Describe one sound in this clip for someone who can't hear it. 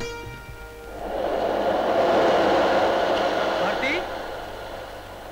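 A wave breaks and crashes with a loud rushing roar.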